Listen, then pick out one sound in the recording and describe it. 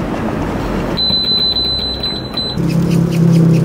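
A machine beeps steadily as a button is pressed.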